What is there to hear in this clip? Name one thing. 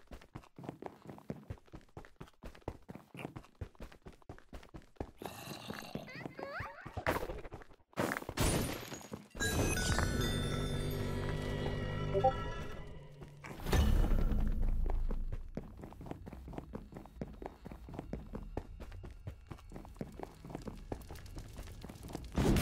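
Quick footsteps tap on stone.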